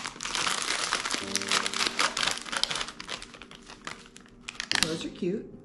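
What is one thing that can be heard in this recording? A plastic wrapper crinkles loudly in a woman's hands.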